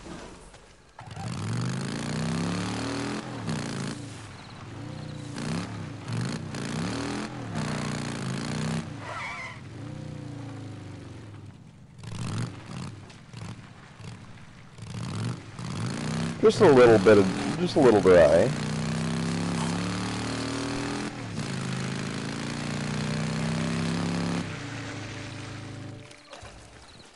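A motorcycle engine revs and roars as the bike rides along.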